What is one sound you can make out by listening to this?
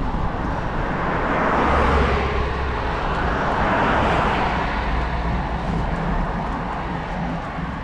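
Two cars drive past close by on a road, one after the other, rising and fading.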